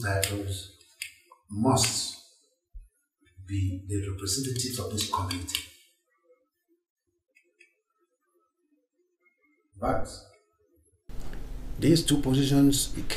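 An elderly man speaks slowly and firmly, close by.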